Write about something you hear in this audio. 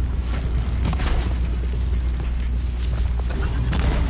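A bowstring twangs as arrows fly.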